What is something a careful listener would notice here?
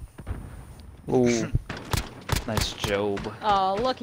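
Rapid rifle shots ring out.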